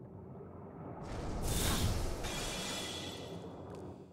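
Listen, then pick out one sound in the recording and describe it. A deep magical whoosh swells and roars.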